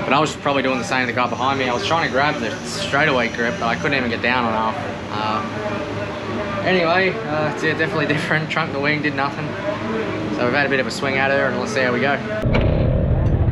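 A young man talks casually and close up.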